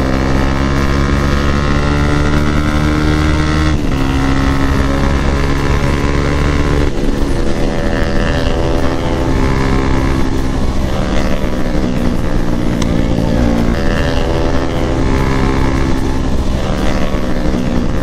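A motorcycle engine hums steadily up close, shifting gears as it rides.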